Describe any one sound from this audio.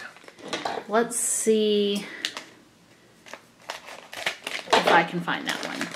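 A plastic packet crinkles in a hand.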